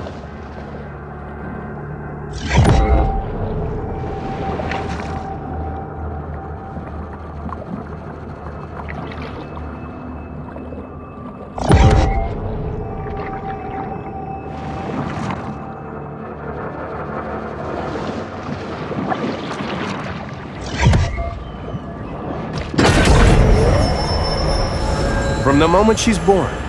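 Water murmurs and gurgles in a steady underwater hush.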